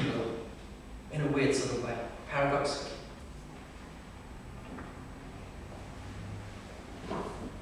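A man speaks with animation into a microphone in an echoing hall.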